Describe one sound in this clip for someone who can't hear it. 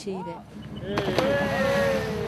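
A person splashes loudly into water.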